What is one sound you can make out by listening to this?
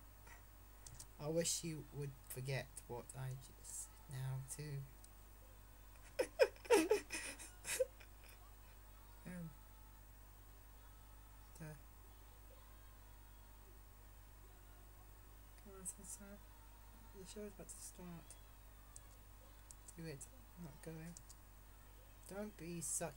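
A teenage boy talks casually into a close microphone.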